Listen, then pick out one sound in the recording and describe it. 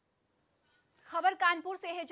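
A young woman speaks clearly into a microphone, like a news presenter.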